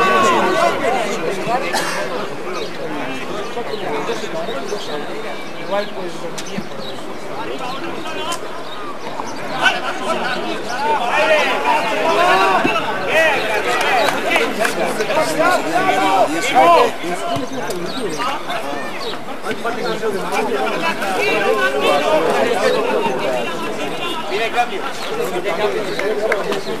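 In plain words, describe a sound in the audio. Young men shout to each other across an outdoor football pitch.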